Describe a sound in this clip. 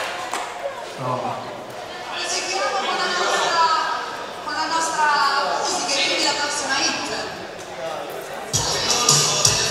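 A man speaks with animation into a microphone, heard over loudspeakers.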